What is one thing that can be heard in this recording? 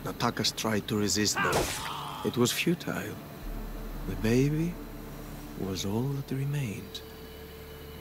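A man speaks quietly and sorrowfully, close by.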